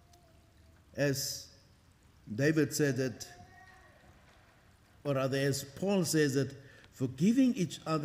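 An elderly man speaks slowly and formally through a microphone, with pauses.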